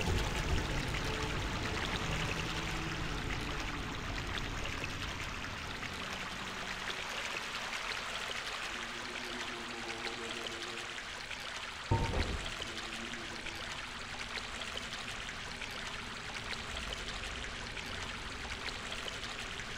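Footsteps splash through shallow water in an echoing tunnel.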